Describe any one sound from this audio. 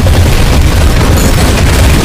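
Sparks crackle and hiss overhead.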